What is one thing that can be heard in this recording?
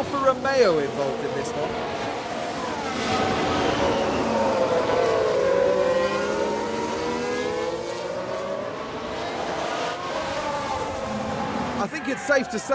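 Racing cars roar past with engines whining up and down in pitch.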